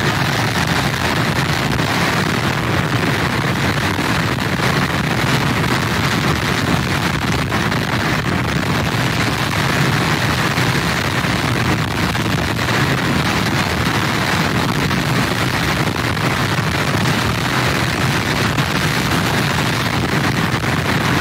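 Strong wind blows loudly outdoors.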